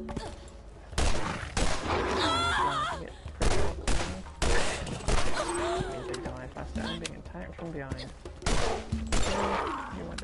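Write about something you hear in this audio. Guns fire in loud, sharp bursts.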